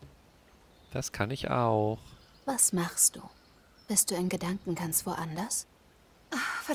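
A woman asks a question calmly, heard close.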